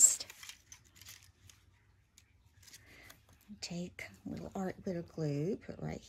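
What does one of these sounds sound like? Paper cutouts rustle and tap softly against a plastic tray.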